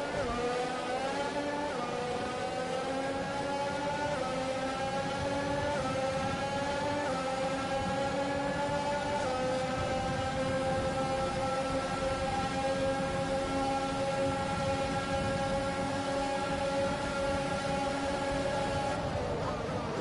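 A racing car engine screams at high revs, rising through the gears.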